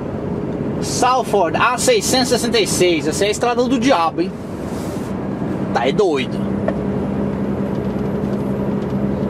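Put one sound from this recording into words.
A truck engine hums steadily while driving on a motorway.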